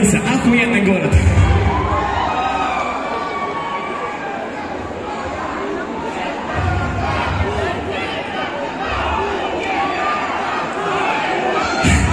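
A crowd cheers and sings along.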